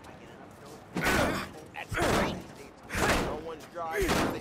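A baseball bat smashes hard against a car's metal body.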